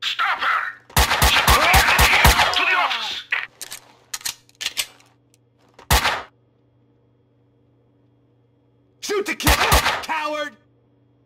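Pistol shots fire in quick bursts and echo.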